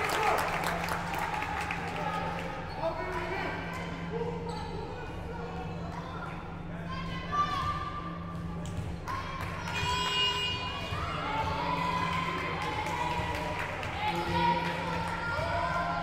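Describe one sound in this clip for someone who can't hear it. Sneakers squeak sharply on a hard floor in an echoing hall.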